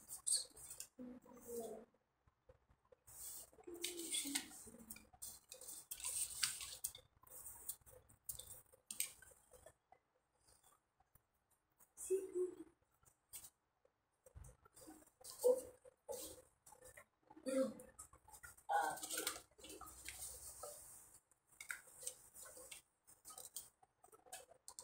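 Paper rustles and slides under a hand.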